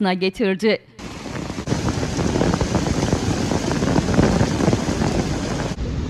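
Hail pours down hard outdoors with a dense, steady patter.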